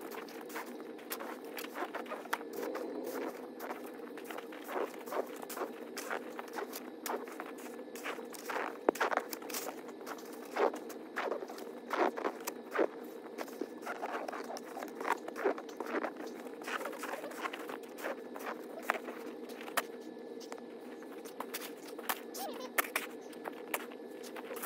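A snow shovel scrapes and thuds against packed snow.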